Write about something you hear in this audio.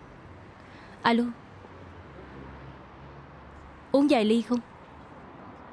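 A young woman speaks briefly into a phone.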